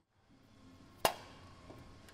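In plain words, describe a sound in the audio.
A hard plastic frame knocks sharply once.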